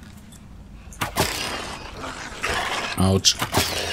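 A beast growls and snarls close by.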